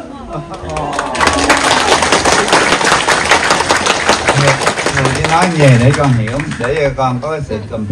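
A group of people clap their hands.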